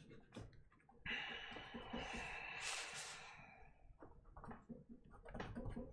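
A sheet of paper rustles as it slides across a table.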